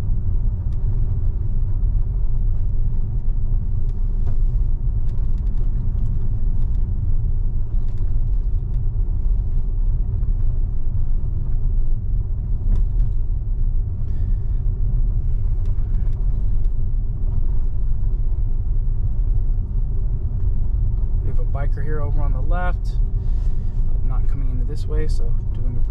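A car hums and rumbles steadily on a smooth road, heard from inside.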